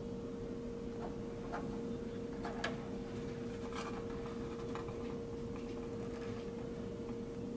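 Fingers handle thin plastic cables with soft clicks and rustles.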